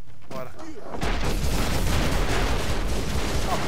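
A loud explosion rumbles and crackles.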